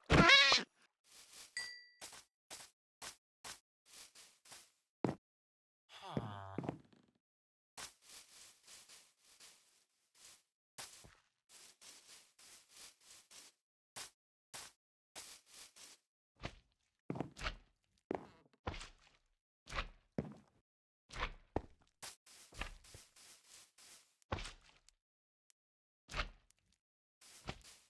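Footsteps thud steadily on grass and dirt.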